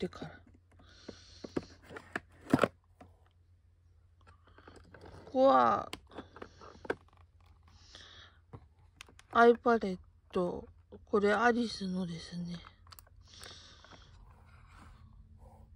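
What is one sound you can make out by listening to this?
Small plastic items click and rattle as a hand rummages through a case.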